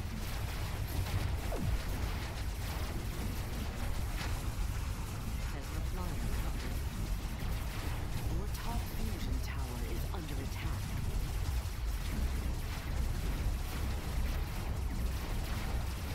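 A low engine rumbles steadily throughout.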